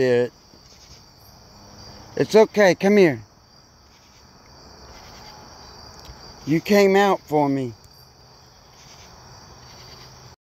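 Footsteps scuff softly over dry dirt and grass.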